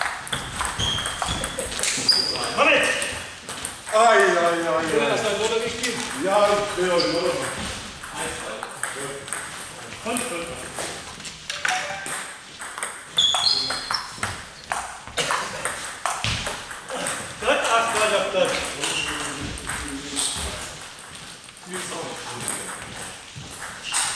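A ping-pong ball clicks back and forth off paddles and a table in an echoing hall.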